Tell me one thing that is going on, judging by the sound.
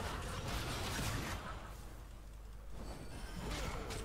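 Magic blasts whoosh and burst in a fight.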